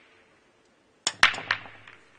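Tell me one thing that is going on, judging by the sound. A cue strikes the cue ball sharply.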